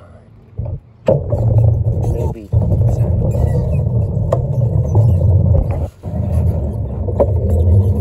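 Skateboard wheels roll and rumble over rough asphalt.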